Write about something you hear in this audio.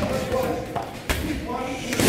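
A kick slams into a heavy bag.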